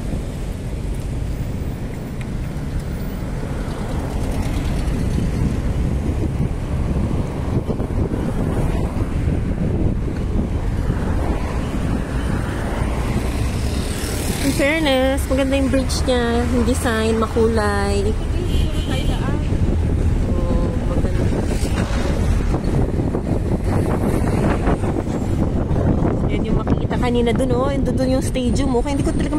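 A car engine hums and tyres rumble on the road.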